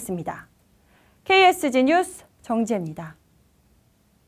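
A young woman speaks clearly and calmly into a close microphone.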